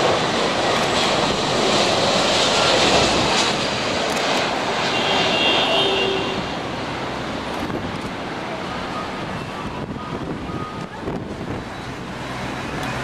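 Jet engines roar loudly as an airliner takes off and fades into the distance.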